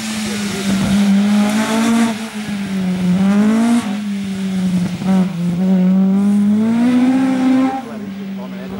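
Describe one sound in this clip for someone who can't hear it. A rally car engine revs hard, rising and falling as the gears change.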